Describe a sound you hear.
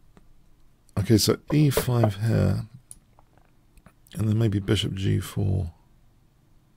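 An older man speaks calmly into a microphone, in two short bursts.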